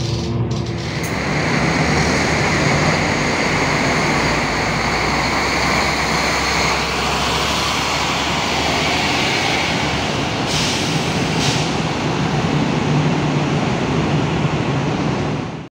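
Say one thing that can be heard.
Bus engines rumble in an echoing covered depot.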